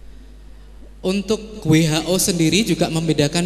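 An elderly woman speaks up close into a handheld microphone.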